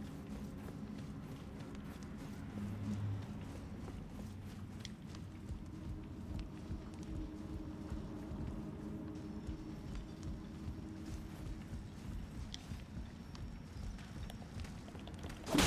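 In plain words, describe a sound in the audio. Footsteps crunch on gravel and thud on wooden boards.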